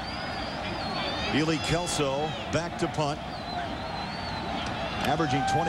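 A large crowd roars steadily in an open stadium.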